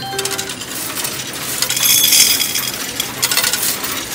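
Coins clatter into a machine.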